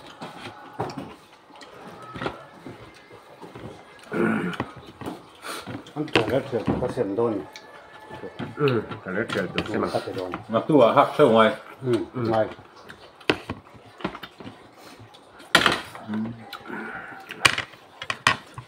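Spoons clink and tap against bowls and plates.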